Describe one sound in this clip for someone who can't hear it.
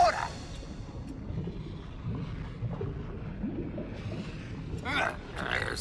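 Lava bubbles and gurgles with a low rumble.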